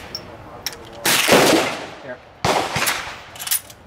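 A rifle fires loud sharp shots outdoors, each ringing out briefly.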